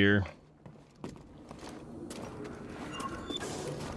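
Footsteps scuff over rocky ground.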